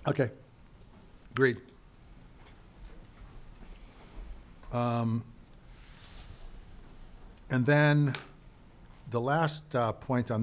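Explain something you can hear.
An older man speaks calmly into a microphone in short phrases.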